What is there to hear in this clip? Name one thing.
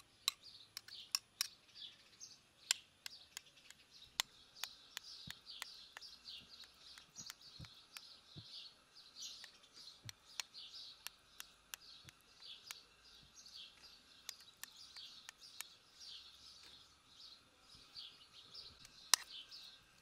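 A metal spoon clinks and taps against a plate.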